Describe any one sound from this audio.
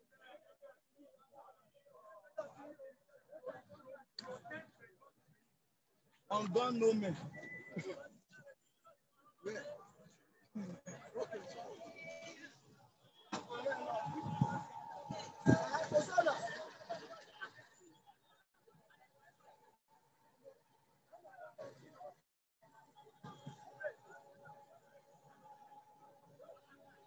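A crowd of protesters chants and shouts outdoors.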